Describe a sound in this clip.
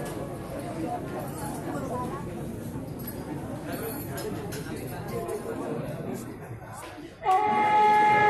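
A crowd of men murmurs and talks quietly in an echoing room.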